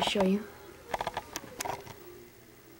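A plastic toy taps lightly on a hard surface.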